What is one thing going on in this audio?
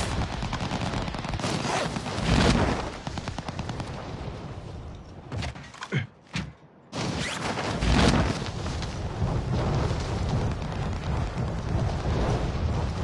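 Wind rushes loudly past a falling parachutist.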